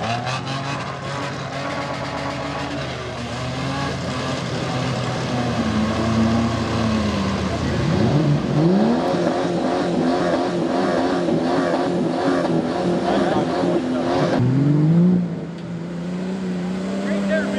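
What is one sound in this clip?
Tyres churn and splash through thick mud.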